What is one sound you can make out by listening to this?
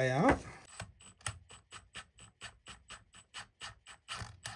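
A ratchet clicks rapidly as a bolt is turned.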